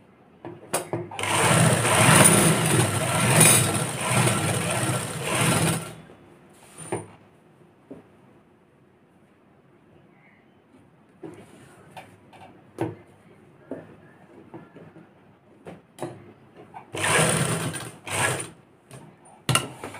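A sewing machine runs in fast bursts, whirring and clattering.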